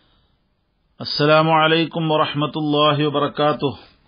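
A man chants in a steady, melodic voice through a microphone.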